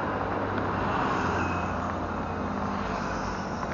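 Cars and a truck rush past on a road.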